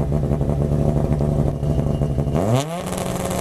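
A rally car engine idles with a rough, loud rumble.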